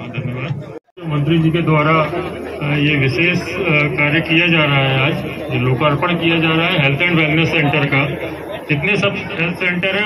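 A man speaks forcefully into a microphone over loudspeakers.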